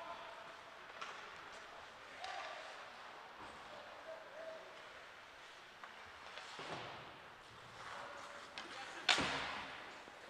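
A hockey stick clacks sharply against a puck.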